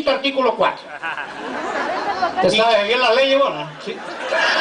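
A man speaks loudly through a microphone, outdoors.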